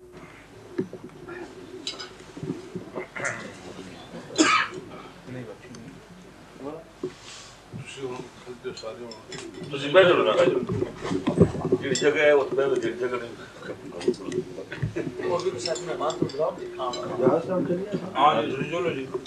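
Several men talk calmly nearby, their voices overlapping.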